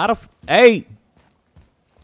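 A young man speaks loudly and excitedly into a close microphone.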